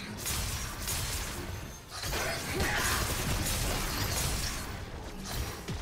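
Fantasy combat sound effects whoosh and clash in quick bursts.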